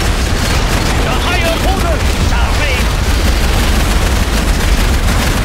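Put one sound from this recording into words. Explosions boom and rumble in a steady battle din.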